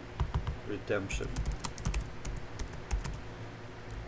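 Keys on a keyboard click in quick taps.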